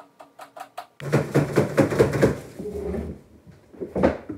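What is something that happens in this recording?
Ice cubes clink and rattle in a glass.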